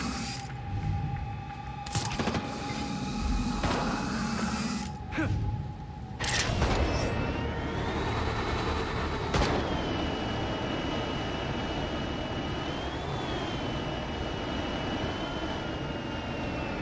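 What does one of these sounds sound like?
Wind rushes past a falling figure.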